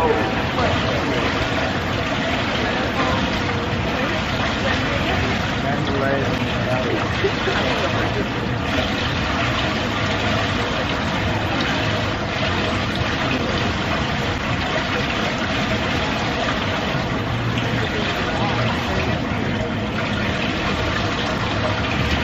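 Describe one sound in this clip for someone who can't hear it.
Young women chat casually nearby, outdoors.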